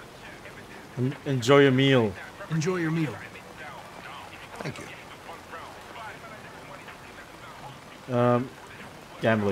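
An older man speaks in a low, gruff voice.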